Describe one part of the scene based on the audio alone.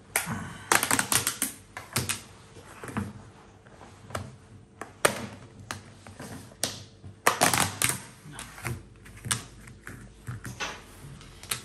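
Hands tap and click small objects against a table.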